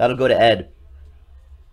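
A man speaks briefly and loudly into a microphone.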